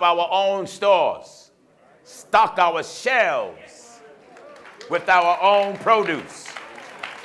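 A man preaches loudly and with passion through a microphone in an echoing hall.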